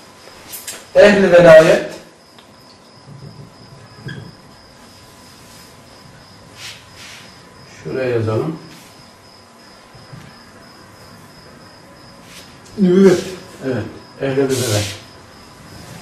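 A man speaks in short bursts, calmly.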